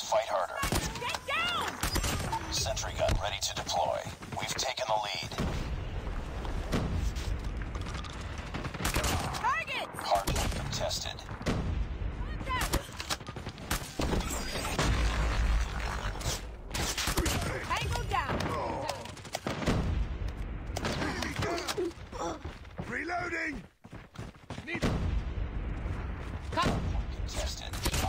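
Gunfire from a game rattles in quick bursts.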